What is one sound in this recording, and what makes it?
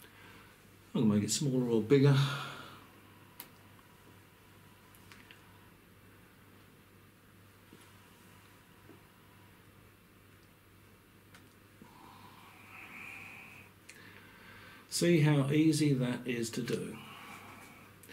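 An elderly man speaks calmly and close by.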